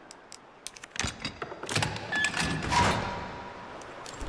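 An electronic lock clicks and clunks open.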